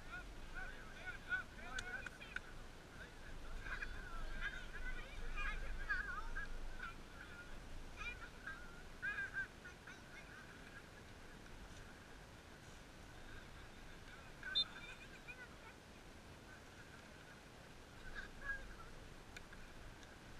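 Young players shout and call out across an open field in the distance.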